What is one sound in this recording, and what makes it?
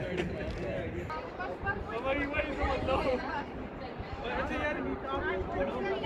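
Young men and women laugh and chat together outdoors.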